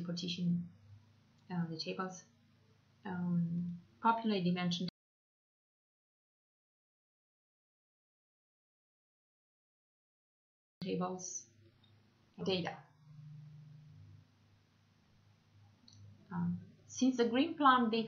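A young woman speaks calmly and close into a microphone, with pauses.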